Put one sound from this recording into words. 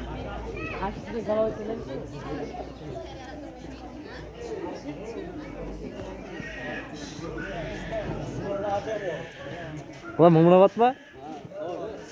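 Several men talk at once nearby outdoors.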